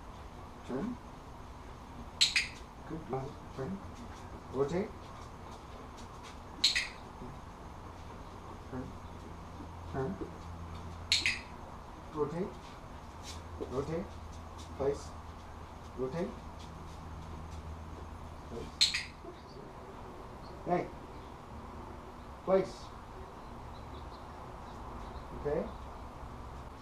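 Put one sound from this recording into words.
A man gives short commands to a dog in a calm voice, close by.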